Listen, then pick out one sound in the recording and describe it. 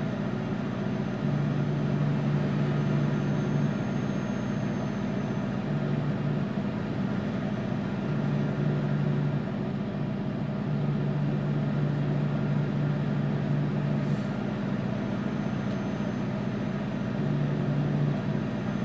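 A truck engine hums steadily while driving on a highway.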